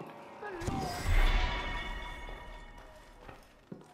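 A game chime rings out and fades.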